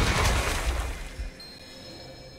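A bright magical whoosh swells and fades.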